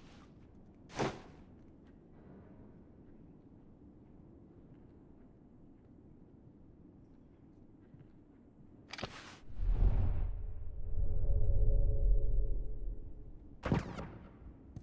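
Pistol shots crack sharply a few times.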